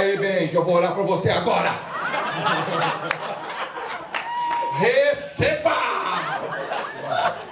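An audience of men and women laughs and chatters nearby.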